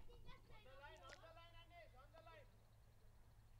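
A man calls out loudly outdoors, a short way off.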